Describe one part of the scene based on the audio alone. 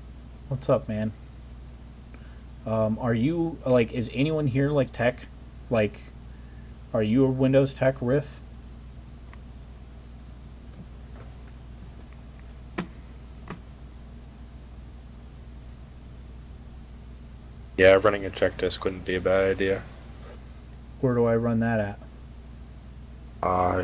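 A man talks casually into a close microphone, in short bursts with pauses.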